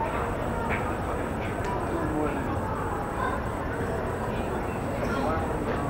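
Distant voices murmur and call out in a large echoing hall.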